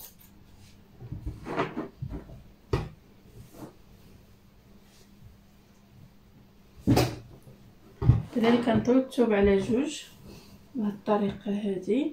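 Fabric rustles as hands handle and fold clothes.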